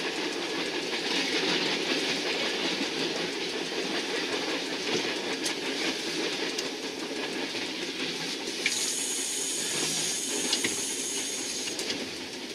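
A train engine rumbles steadily as it rolls along the track.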